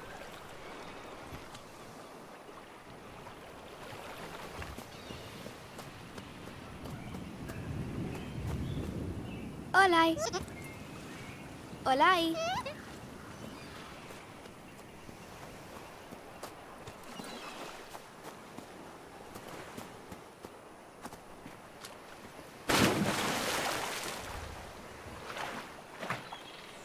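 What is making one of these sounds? Water laps gently at a shore.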